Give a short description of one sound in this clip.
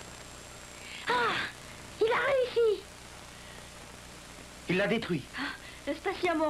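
A young woman speaks cheerfully up close.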